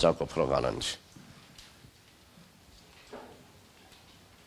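A man speaks through a microphone, heard over a loudspeaker.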